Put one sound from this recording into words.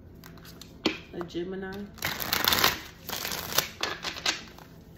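Playing cards are shuffled with a quick riffling rustle.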